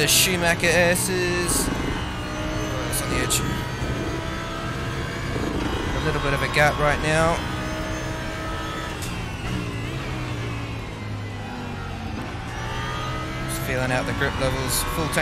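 A race car engine drones steadily and shifts pitch as it accelerates and slows.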